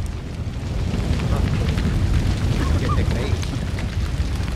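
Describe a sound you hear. A fire roars and crackles nearby.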